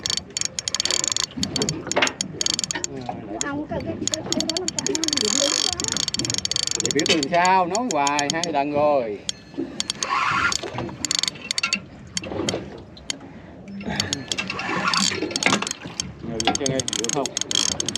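A fishing reel winds with a fast clicking whir.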